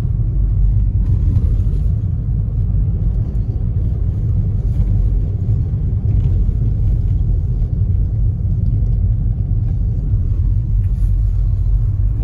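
Tyres roll over snowy road.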